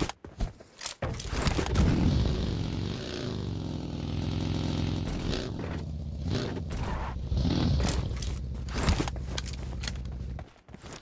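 A buggy engine roars as it drives over rough ground.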